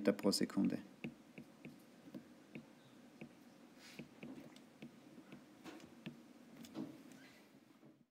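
A pen taps and scratches softly on a writing surface.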